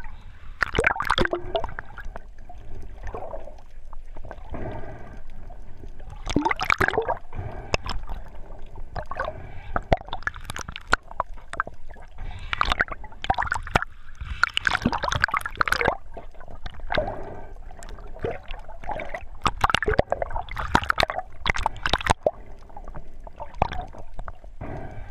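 A swimmer breathes heavily through a snorkel, close by.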